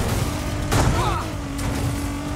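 A car scrapes along a metal barrier.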